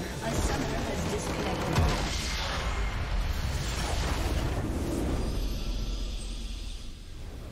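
A large structure explodes with a deep rumbling boom.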